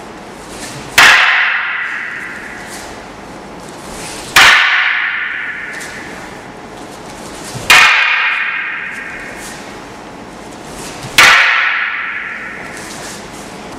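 Wooden staffs clack together sharply, echoing loudly in a large hall.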